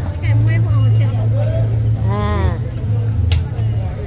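A metal spatula scrapes and taps on a hot griddle.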